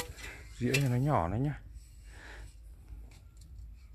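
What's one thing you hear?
A shovel scrapes through loose gravel.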